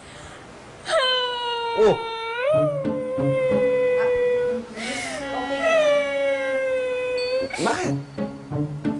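A young woman giggles and squeals behind her hand.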